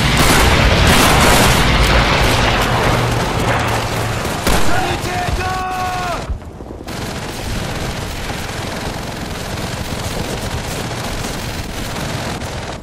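Gunfire cracks and rattles rapidly nearby.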